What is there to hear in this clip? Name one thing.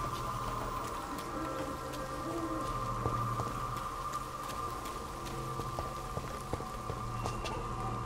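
Footsteps run over stone and gravel.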